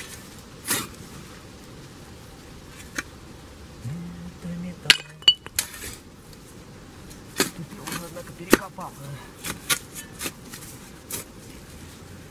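A shovel scrapes and digs into dry soil.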